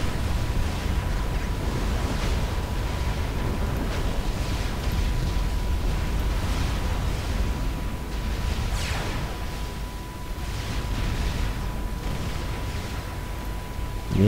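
Laser guns fire in short zapping bursts.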